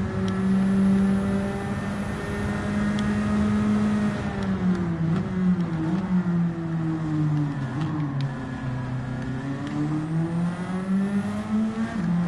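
A racing car engine roars at high revs, drops in pitch as the car brakes and shifts down, then climbs again as it speeds up.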